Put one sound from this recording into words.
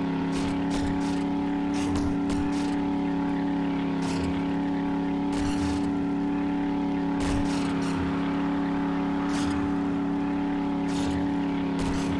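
A truck engine hums steadily as the truck drives.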